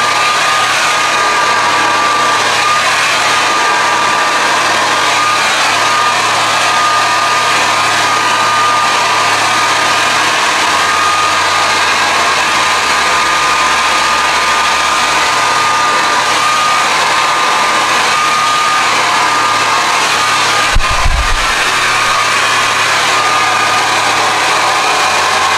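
A hair dryer blows with a loud, steady whine close by.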